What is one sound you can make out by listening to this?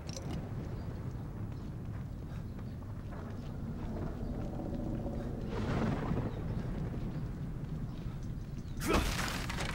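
Footsteps tread on hard wet ground.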